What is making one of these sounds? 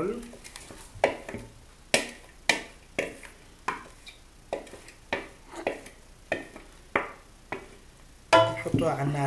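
A wooden spoon knocks against a plastic bowl.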